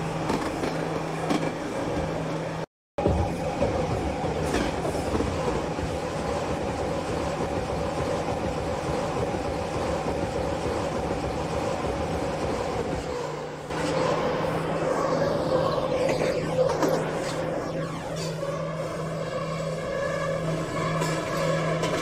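A subway train rumbles steadily along the tracks through a tunnel.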